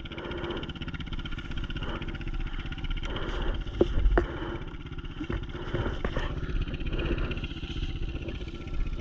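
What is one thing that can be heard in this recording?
A dirt bike engine idles and putters steadily close by.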